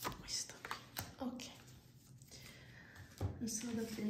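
A card slides and taps onto a wooden table.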